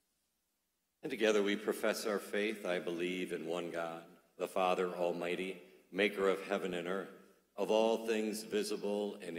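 A middle-aged man chants slowly through a microphone.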